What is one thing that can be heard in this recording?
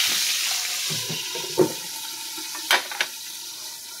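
A glass lid clinks onto a frying pan.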